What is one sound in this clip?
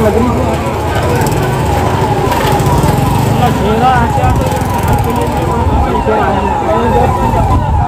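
A crowd of men talk and shout outdoors.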